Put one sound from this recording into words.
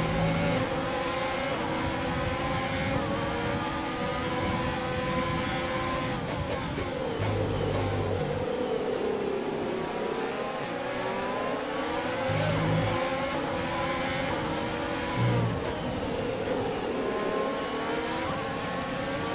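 A racing car engine screams at high revs, dropping in pitch as it brakes and rising again as it speeds up.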